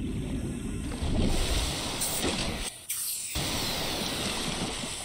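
Water splashes and laps at the surface.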